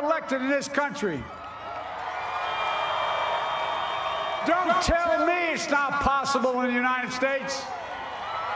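An elderly man speaks forcefully into a microphone, his voice echoing over a loudspeaker.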